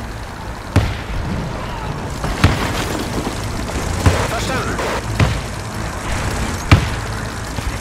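Explosions boom in short, loud bursts at intervals.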